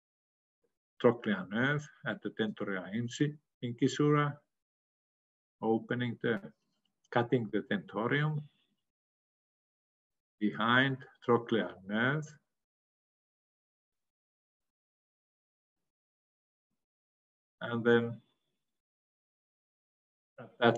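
An elderly man speaks calmly through an online call, in short phrases with pauses.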